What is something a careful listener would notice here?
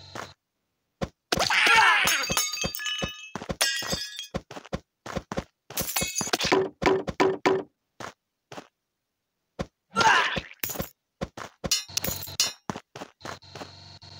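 Light footsteps patter quickly as a game character runs.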